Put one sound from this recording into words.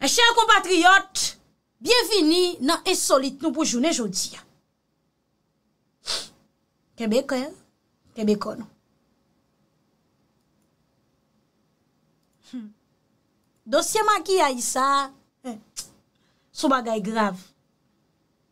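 A woman speaks with animation into a close microphone, in short bursts with pauses.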